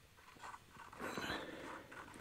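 Ice crunches and scrapes around a hole.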